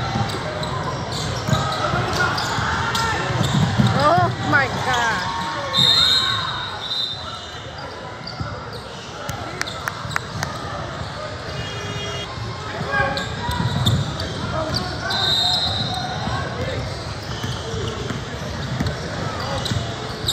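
Spectators chatter and cheer in a large echoing gym.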